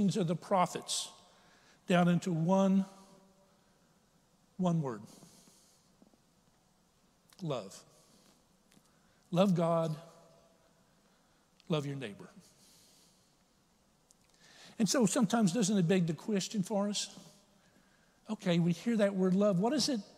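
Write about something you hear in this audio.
A middle-aged man speaks with feeling through a microphone, in short phrases with pauses, in a large echoing hall.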